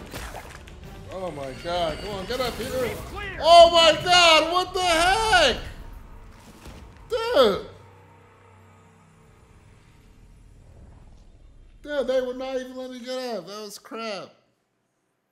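A young man talks and exclaims with animation close to a microphone.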